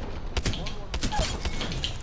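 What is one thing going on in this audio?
Water splashes from bullet impacts.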